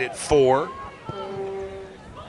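A soccer ball is kicked with a dull thud.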